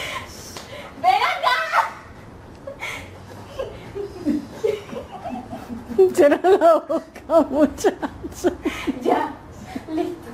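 Two young women laugh close by.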